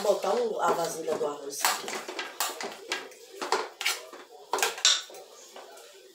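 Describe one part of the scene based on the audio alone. A spoon scrapes and clinks against a metal pot.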